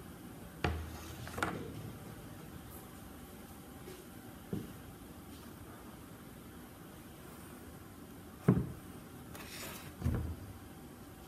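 Clay shapes clatter and knock as they are set down on a table.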